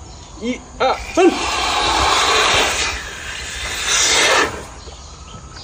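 An elephant blows a strong rush of air into a balloon.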